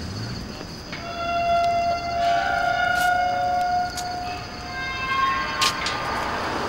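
A metal gate creaks and clanks as it is pushed open.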